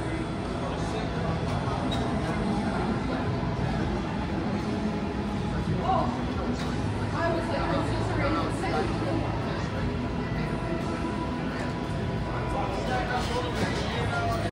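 Slot machines chime and jingle in the background.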